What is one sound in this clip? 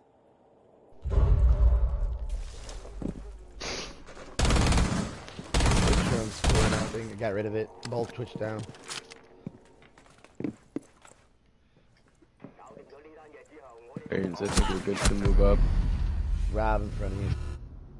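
Gunfire rattles in rapid bursts close by.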